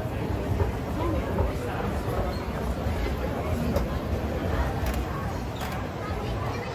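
Footsteps pass close by on a hard floor.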